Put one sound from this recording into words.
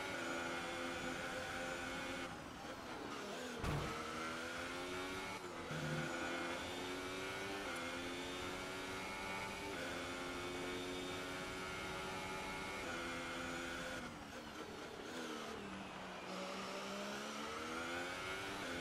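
A racing car engine screams at high revs, its pitch rising through the gears and dropping sharply when braking.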